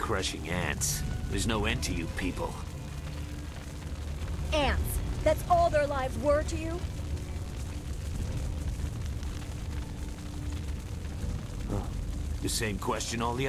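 A man speaks menacingly in a deep voice.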